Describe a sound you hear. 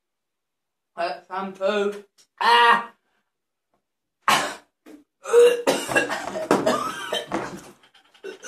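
A young man groans and gags loudly.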